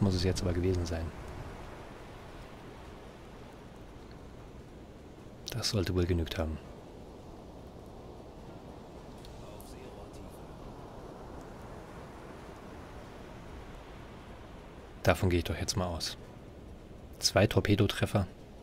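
Waves wash and roll on the open sea.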